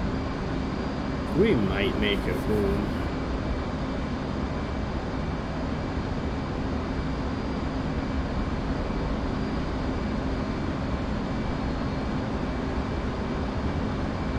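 A jet engine rumbles steadily.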